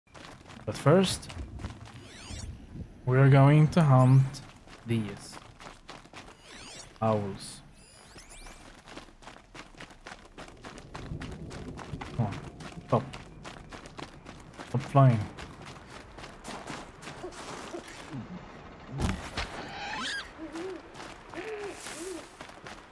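Footsteps crunch through grass and snow.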